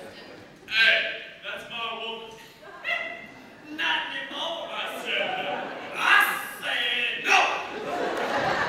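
Men shout and call out loudly in a large echoing hall.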